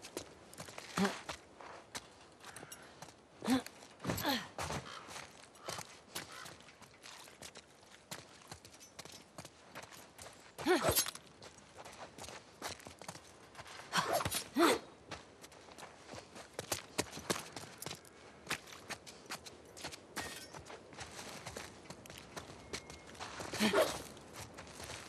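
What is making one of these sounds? A young woman grunts and breathes hard with effort, close by.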